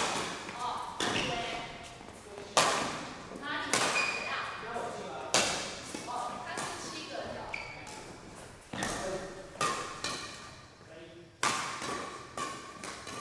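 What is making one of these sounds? Shuttlecocks are smashed with rackets in sharp cracks that echo around a large hall.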